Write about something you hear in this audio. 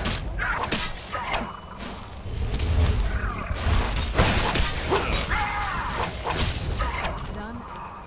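A sword strikes with sharp hits.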